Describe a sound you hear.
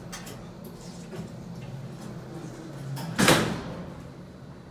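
Elevator doors slide shut with a loud thud.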